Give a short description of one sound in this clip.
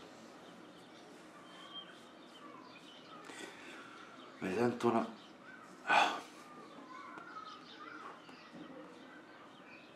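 A towel rubs against a face.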